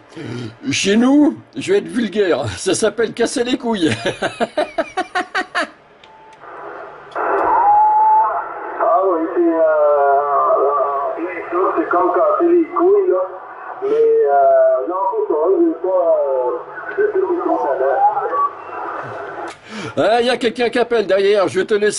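A man talks through a crackly radio loudspeaker.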